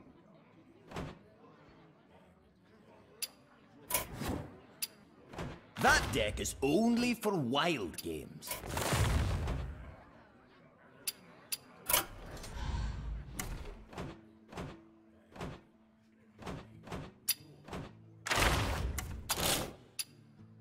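Game menu clicks and chimes sound as options are picked.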